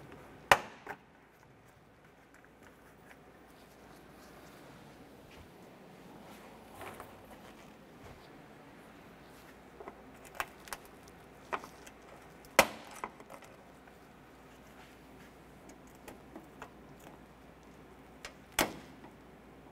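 A metal wrench clicks against plastic fasteners.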